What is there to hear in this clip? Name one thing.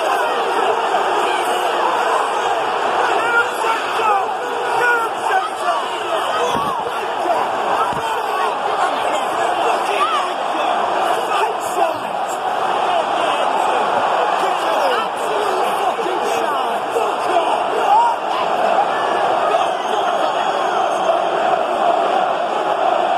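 A large stadium crowd roars and chants loudly throughout.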